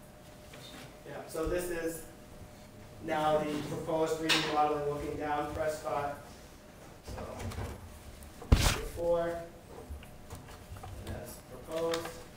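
A man speaks calmly to a room, heard from across the room.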